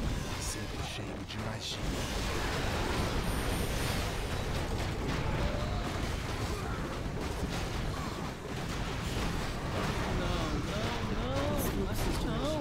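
Spells explode and crackle in a noisy battle.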